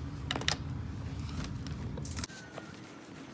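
A door opens with a latch click.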